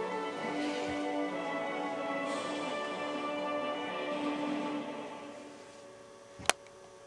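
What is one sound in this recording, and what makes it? Video game music plays through a television speaker and fades out.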